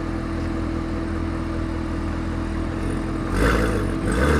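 A sports car's engine idles with a deep rumble.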